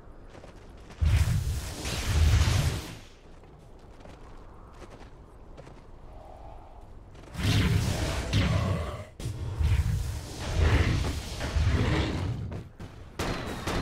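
Game spells crash and whoosh during a fight.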